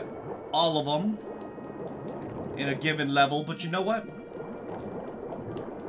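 Water splashes as a swimmer strokes underwater.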